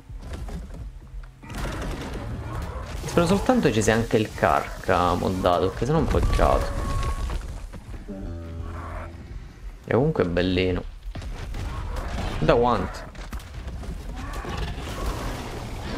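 A large beast bites and tears at another with heavy thuds.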